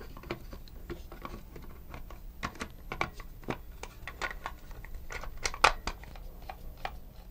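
Plastic parts of a toy click and clatter as hands handle them.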